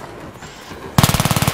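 A rifle fires a rapid burst up close.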